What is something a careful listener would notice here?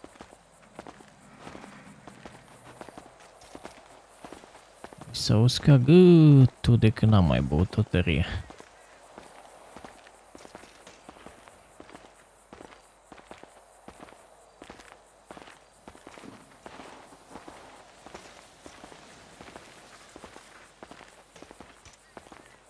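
Footsteps walk steadily on a paved street.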